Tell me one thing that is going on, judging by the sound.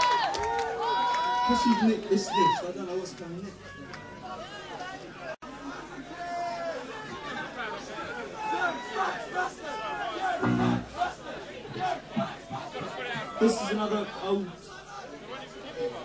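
A rock band plays electric guitars loudly through loudspeakers.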